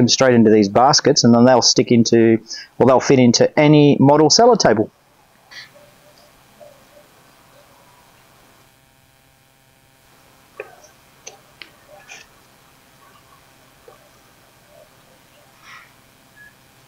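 Small plastic pots click and rustle as they are handled.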